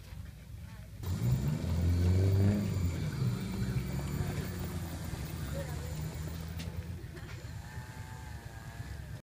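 A model plane's small propeller motor whirs steadily as the plane taxis.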